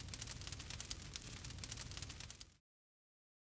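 A fire crackles and hisses softly.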